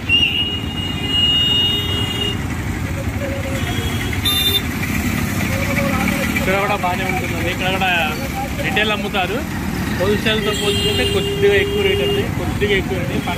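Horns honk in traffic.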